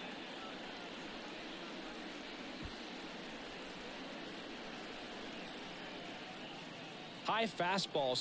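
A large crowd cheers in a stadium.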